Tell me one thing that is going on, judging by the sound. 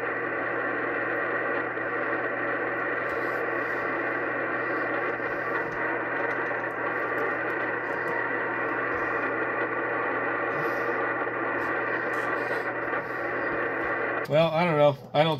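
A radio receiver gives off a steady, buzzing hum.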